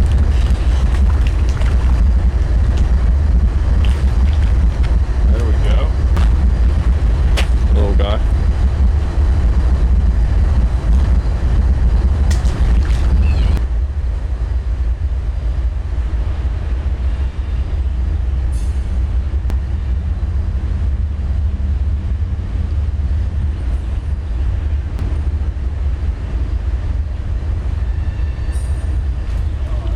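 A river rushes and gurgles steadily nearby.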